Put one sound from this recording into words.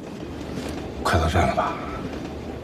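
A man asks a short question quietly.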